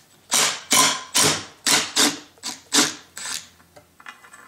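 A cordless impact driver whirs and rattles in short bursts.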